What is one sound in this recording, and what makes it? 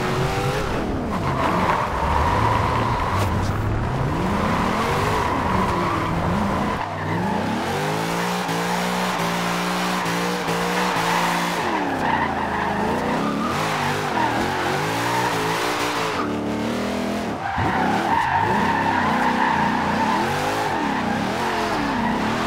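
Tyres screech as a car drifts.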